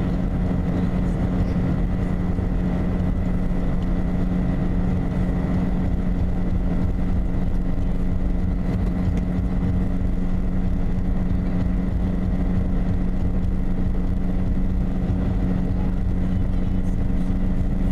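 Tyres rumble on asphalt at highway speed, heard from inside a car.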